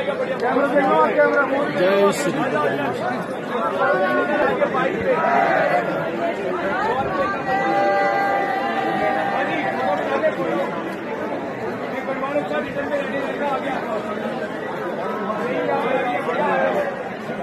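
A crowd of men and women chant and talk together outdoors.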